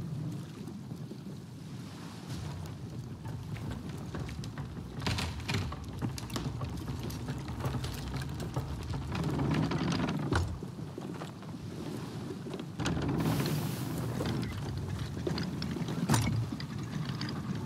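Ocean waves wash and splash steadily against a wooden ship.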